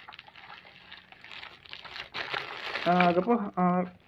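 A plastic bottle crinkles in a hand.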